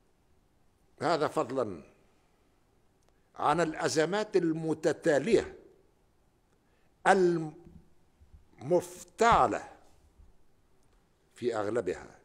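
An elderly man speaks slowly and firmly into a microphone, in phrases with pauses between them.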